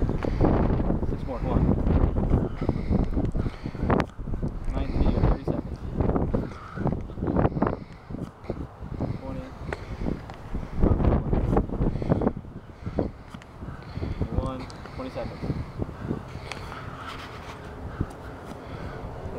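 A man drops onto grass with dull thuds, again and again.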